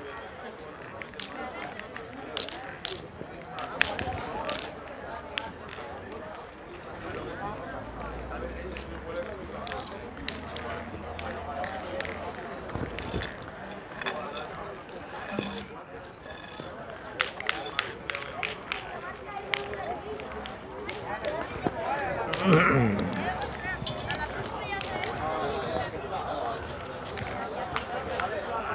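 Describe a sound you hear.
Metal boules clack against each other on gravel.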